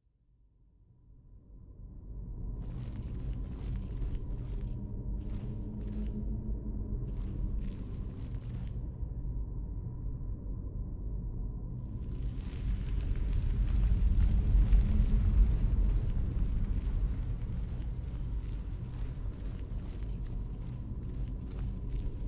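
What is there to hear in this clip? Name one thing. Footsteps crunch over rough, stony ground.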